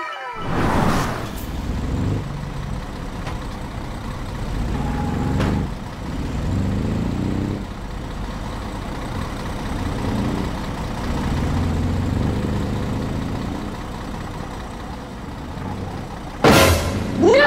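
A heavy truck engine rumbles and idles.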